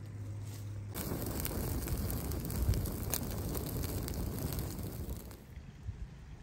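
A wood fire crackles and roars close by.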